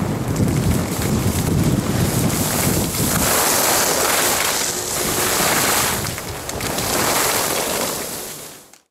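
Wind rushes past, rumbling loudly.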